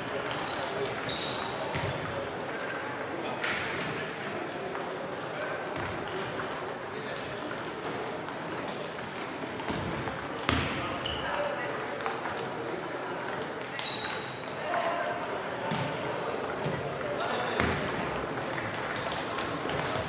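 Table tennis balls click and bounce on tables and paddles in a large echoing hall.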